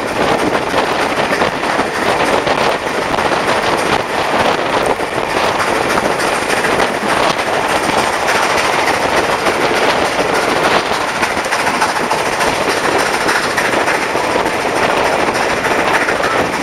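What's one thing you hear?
A train rattles and clatters steadily along the tracks.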